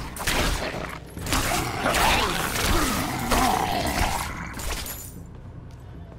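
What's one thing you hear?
Magic blasts crackle and roar in a fight, then quickly die away.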